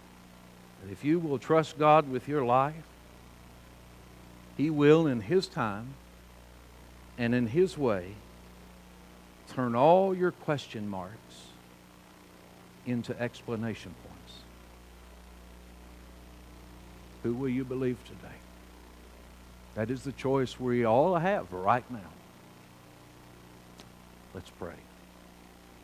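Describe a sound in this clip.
A middle-aged man speaks into a microphone in measured phrases with long pauses.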